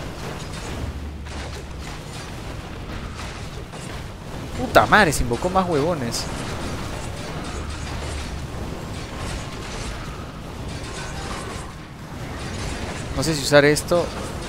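Swords clash and spells burst in a game battle.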